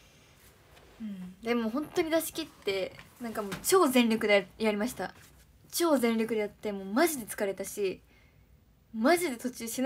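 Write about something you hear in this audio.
A young woman talks close to a microphone in a casual, lively way.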